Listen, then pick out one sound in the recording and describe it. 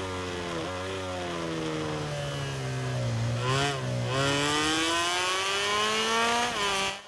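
A racing motorcycle engine whines, dropping in pitch as it slows, then revving higher as it speeds up again.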